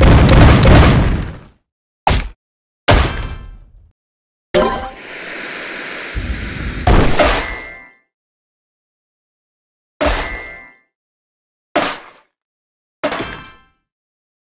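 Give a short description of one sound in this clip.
Game blocks burst with bright popping chimes.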